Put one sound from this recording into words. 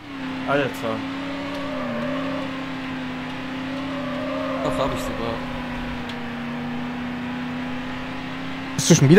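A racing car engine hums steadily at high speed.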